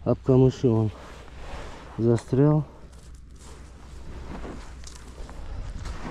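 Wet weeds rustle as hands pull them off a fish.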